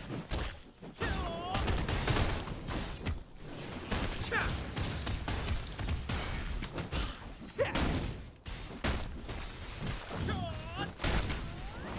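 A giant scorpion screeches.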